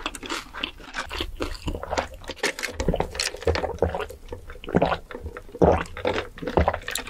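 A young woman sips a drink loudly through a straw.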